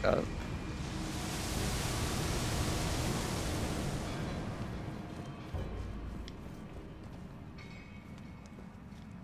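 Footsteps crunch quickly over gravel and dirt.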